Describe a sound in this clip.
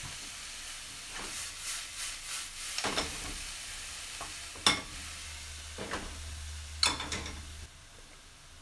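Vegetables sizzle gently in a hot pan.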